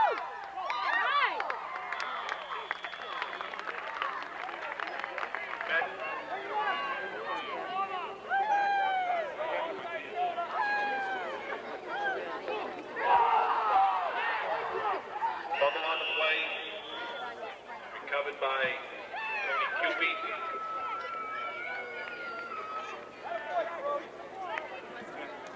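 Spectators shout and cheer nearby, outdoors.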